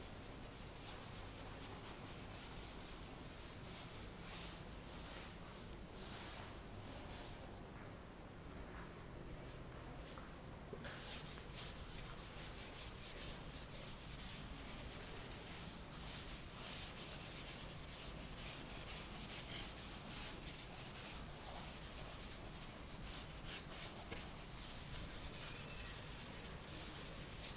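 A felt duster rubs briskly across a chalkboard.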